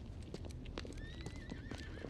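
Heavy footsteps thud down stone stairs.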